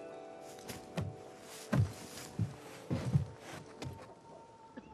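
Heavy punches thud against a body.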